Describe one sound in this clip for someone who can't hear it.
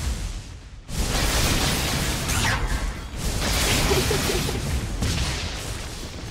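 Magic blasts and clashes of a battle crackle and boom.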